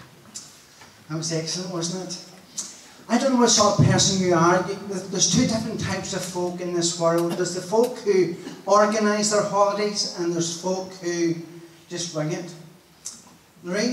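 An elderly man speaks calmly through a microphone and loudspeaker.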